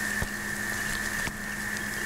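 Rain patters and sizzles softly.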